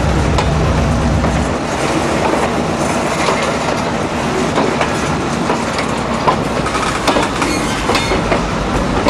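Steel wheels squeal and clank over rail joints.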